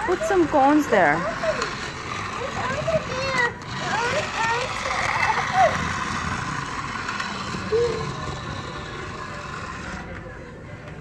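A small toy car whirs along a plastic track.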